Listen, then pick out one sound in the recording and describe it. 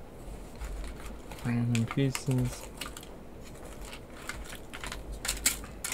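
A spoon scrapes and taps against foil.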